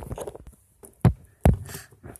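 A small plastic toy knocks against a hard tabletop.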